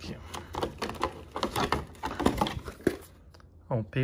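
Plastic packaging crinkles and rustles in a hand.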